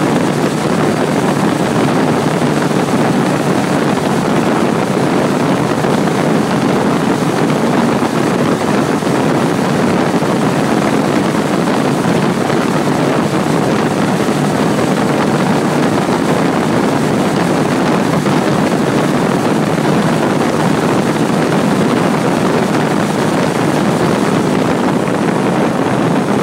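Wind roars loudly past a moving motorcycle rider.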